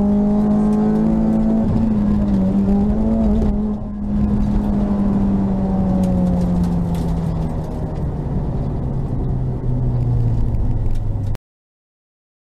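Tyres rumble over a rough road.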